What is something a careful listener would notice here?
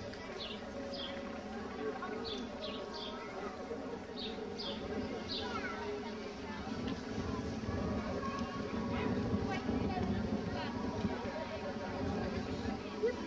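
A crowd of people talks quietly outdoors.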